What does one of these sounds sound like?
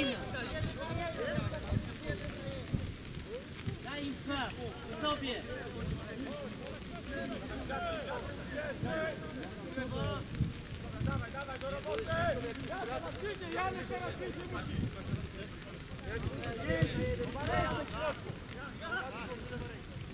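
Young men shout and call to each other across an open playing field.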